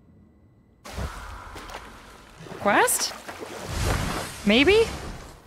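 Oars splash through water as a boat rows along.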